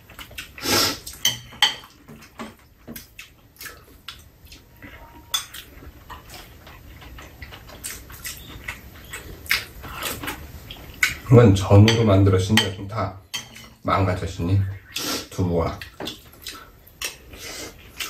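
Spoons and chopsticks clink against bowls.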